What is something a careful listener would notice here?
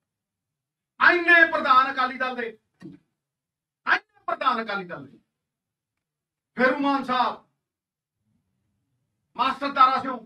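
A man speaks forcefully into a microphone in short bursts, with pauses between them.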